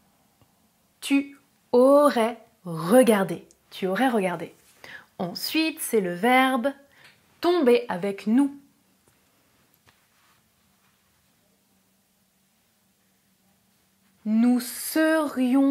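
A young woman speaks clearly and calmly into a close microphone.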